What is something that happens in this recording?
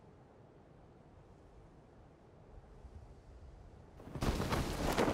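Wind rushes past a parachute as it glides down.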